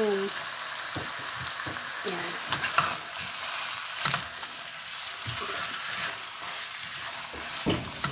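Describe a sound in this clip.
A spatula scrapes and knocks against a pan.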